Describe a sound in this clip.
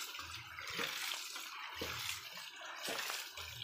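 Water gushes and splashes out of a pipe onto stony ground.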